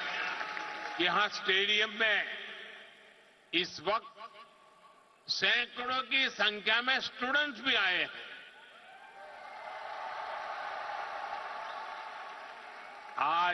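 An elderly man speaks with emphasis into a microphone through loudspeakers.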